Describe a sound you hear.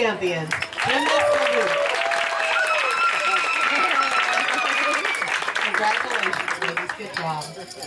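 An audience claps rapidly.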